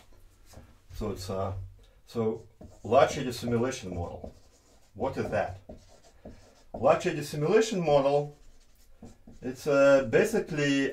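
A man speaks calmly, lecturing close by.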